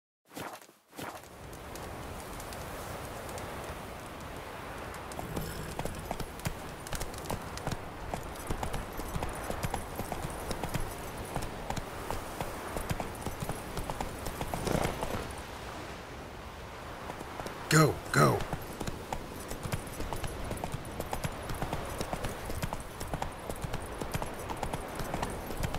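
A horse gallops steadily over rough ground.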